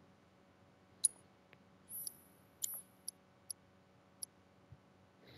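Short electronic menu blips chime one after another.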